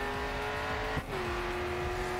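A gear shift briefly cuts the engine's roar.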